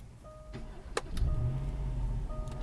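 A car engine starts with a low rumble.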